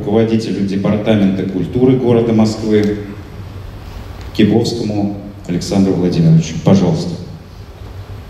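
A man speaks solemnly into a microphone, heard through loudspeakers in a large hall.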